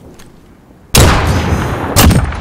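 A sniper rifle fires a single sharp, booming shot.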